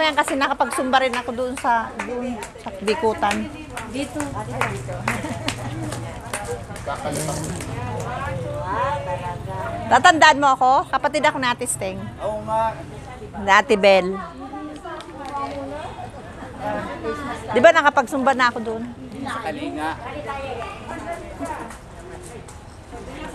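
A group of adults chatter in the background outdoors.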